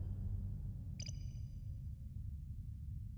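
A short bright chime rings as a menu selection changes.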